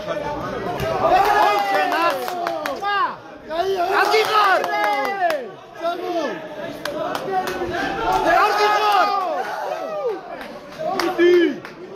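A man close by shouts loudly with excitement.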